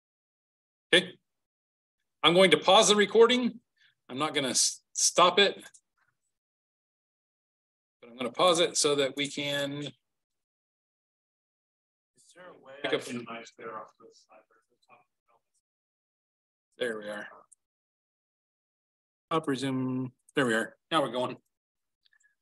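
A man speaks calmly through a microphone, explaining with pauses.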